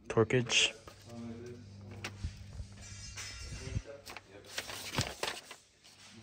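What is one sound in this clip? A sheet of paper rustles and crinkles.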